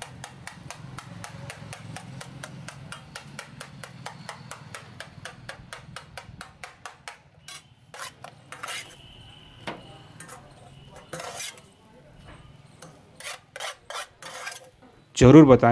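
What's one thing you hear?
A metal spatula clatters rapidly against a metal pan.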